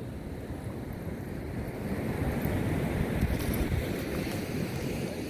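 Wind blows steadily outdoors, rumbling loudly.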